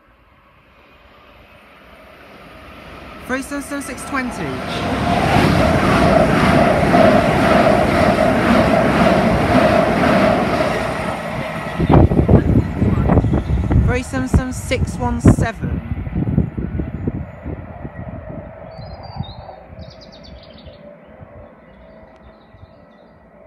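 An electric multiple-unit train approaches and passes at speed, then fades into the distance.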